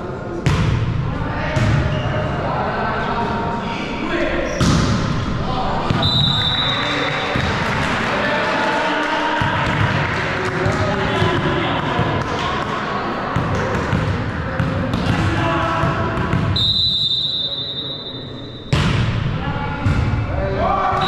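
A volleyball is struck hard with sharp smacks that echo around a large hall.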